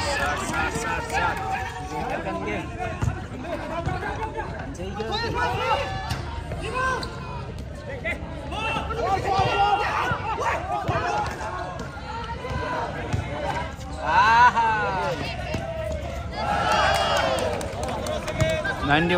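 A basketball thuds as it bounces on the court.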